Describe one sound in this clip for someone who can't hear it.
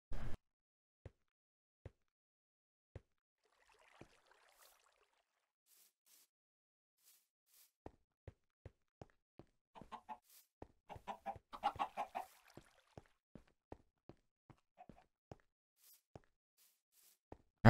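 Footsteps tread softly and evenly on grass and stone.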